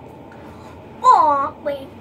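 A young girl gasps and exclaims in surprise close by.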